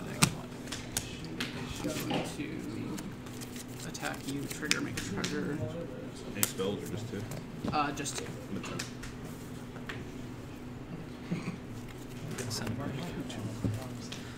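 Playing cards are dealt and slapped onto a table.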